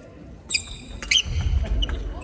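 A racket strikes a shuttlecock with a light pop.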